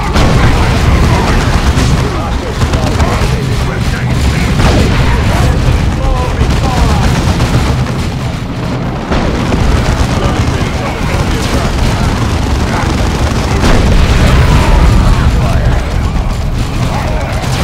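Gunfire and explosions crackle and boom in a battle.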